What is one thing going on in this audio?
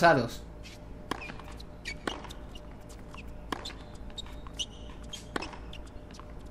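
A tennis ball is struck by rackets again and again.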